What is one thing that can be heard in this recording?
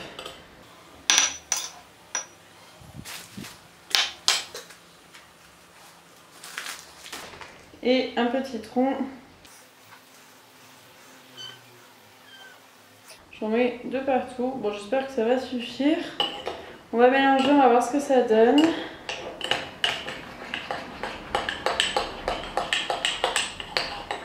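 A metal spoon clinks and scrapes against a glass jar.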